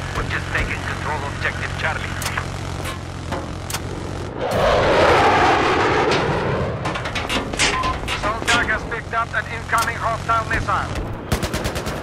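Heavy cannon shots boom.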